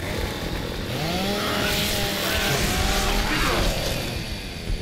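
A chainsaw revs and grinds loudly.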